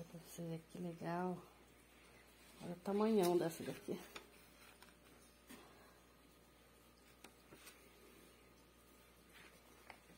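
Paper banknotes rustle softly in a hand.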